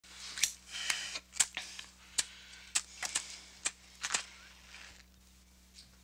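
A lighter's flint wheel clicks and scrapes again and again, close by.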